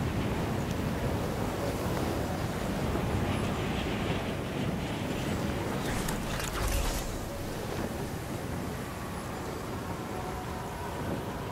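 Strong wind roars and rushes steadily.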